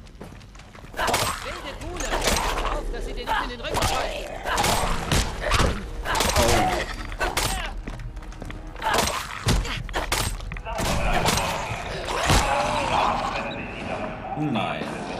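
Ghouls snarl and screech as they attack.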